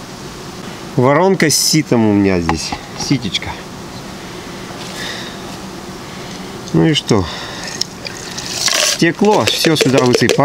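A middle-aged man talks calmly close by, outdoors.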